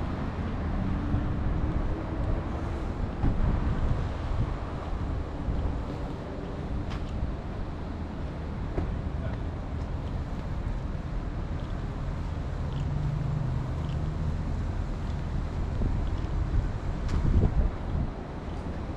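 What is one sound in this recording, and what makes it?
Traffic hums steadily in the distance.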